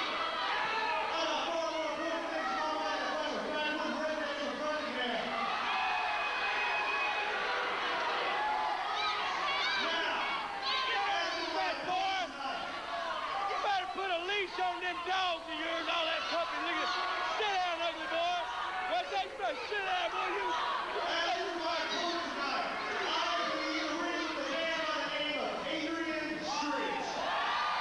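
A crowd cheers and jeers.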